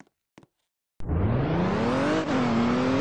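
A car engine revs up as the car accelerates.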